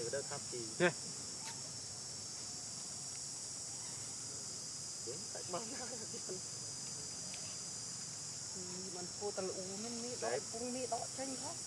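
A monkey chews and bites into soft fruit.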